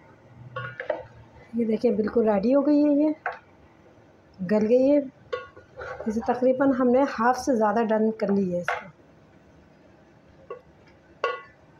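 A spatula stirs chunks of meat in a metal pot, scraping against its sides.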